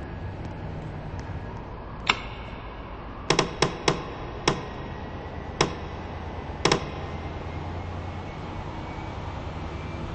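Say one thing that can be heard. A train engine hums low and steadily.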